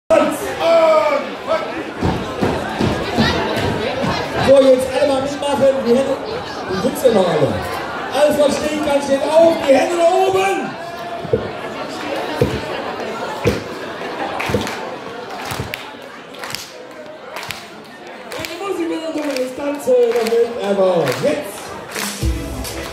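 Boots stamp and thud on a wooden stage.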